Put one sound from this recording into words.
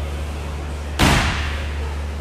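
Heavy dumbbells thud onto a hard floor.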